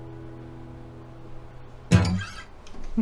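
A guitar chord rings out and fades.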